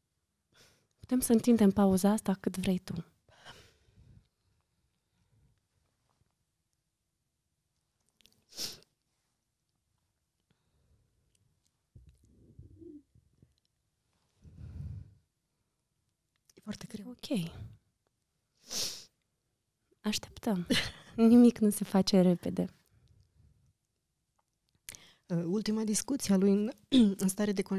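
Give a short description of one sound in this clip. A woman speaks close to a microphone, pausing between phrases.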